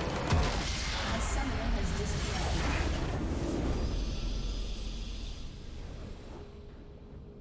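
A large structure explodes with a deep booming rumble.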